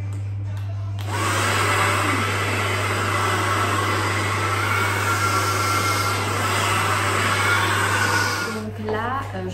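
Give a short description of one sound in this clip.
A hair dryer blows loudly and steadily close by.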